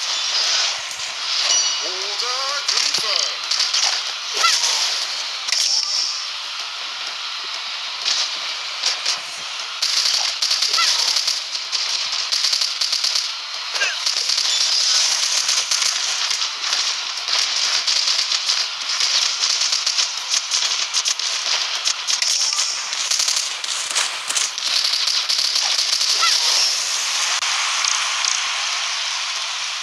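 Rapid cartoonish gunfire crackles and pops in a video game.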